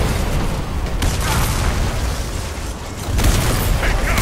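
Gunshots fire in a video game.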